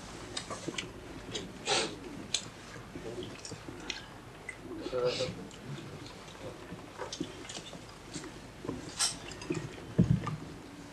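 Cutlery and dishes clink and clatter.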